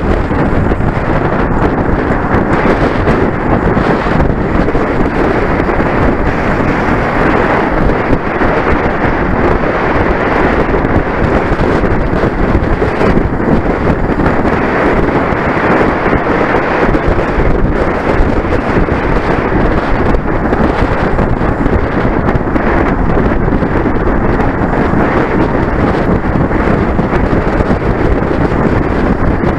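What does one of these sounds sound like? Wind rushes loudly past a moving bicycle.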